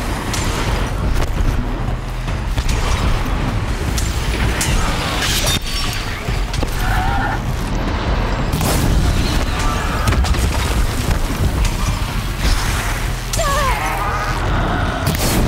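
Explosions boom and crackle repeatedly.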